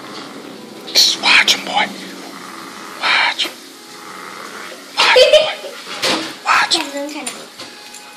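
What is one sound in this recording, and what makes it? A dog barks and yelps excitedly nearby.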